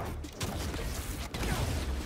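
A fiery blow whooshes and thuds.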